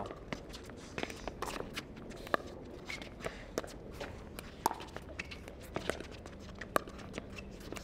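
Paddles pop sharply against a ball in a quick rally.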